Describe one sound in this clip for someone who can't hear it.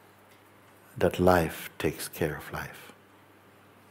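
A middle-aged man speaks calmly and softly, close to a microphone.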